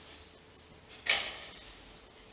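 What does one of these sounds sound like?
A metal vessel clinks against a table.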